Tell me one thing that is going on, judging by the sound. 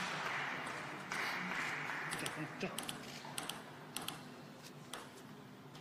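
A table tennis ball bounces with light clicks.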